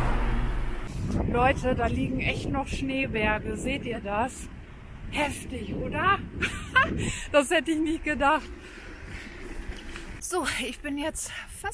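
A young woman speaks calmly and close to the microphone.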